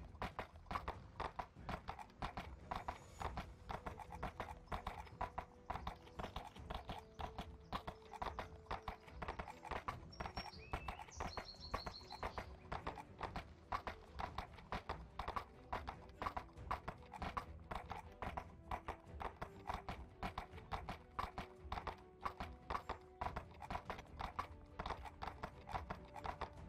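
A horse's hooves clop steadily on a stony path.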